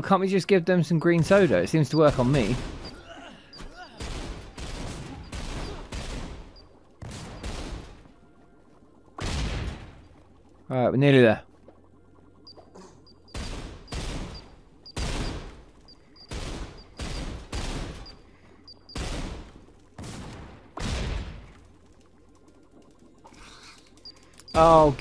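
Gunshots fire in quick bursts, echoing in a cave.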